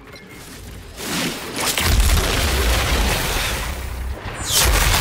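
A large creature roars and stomps.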